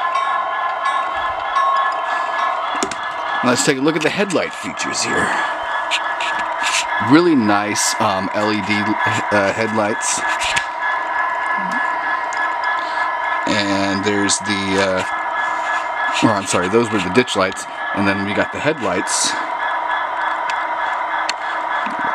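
A small electric train motor hums steadily.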